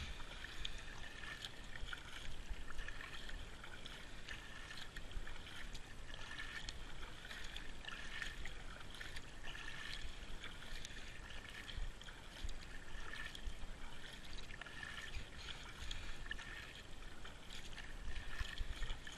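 Water laps and gurgles against the hull of a kayak.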